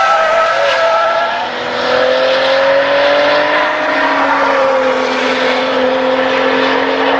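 A car engine revs up and shifts gears while accelerating away.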